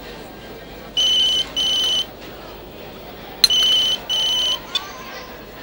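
A mobile phone rings.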